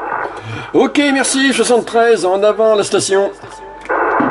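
A man's voice talks quickly through a crackly radio loudspeaker.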